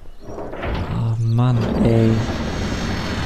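A deep chime rings out.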